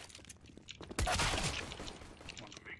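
A pistol fires once.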